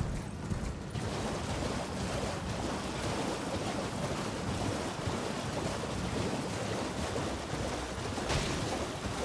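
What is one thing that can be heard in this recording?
Water splashes and sprays steadily as a horse gallops through shallows.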